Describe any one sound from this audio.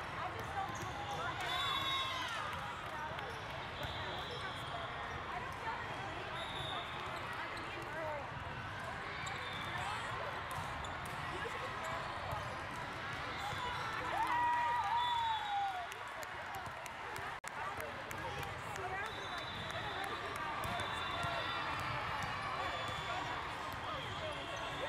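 A crowd murmurs and cheers throughout a large echoing hall.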